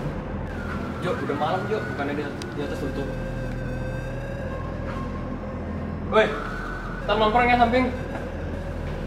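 A young man speaks quietly and briefly.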